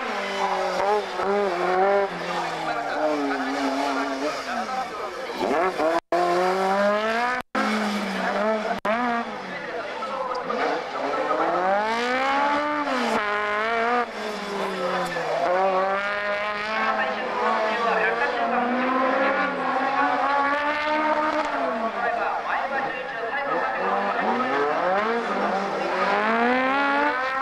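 Tyres squeal on asphalt.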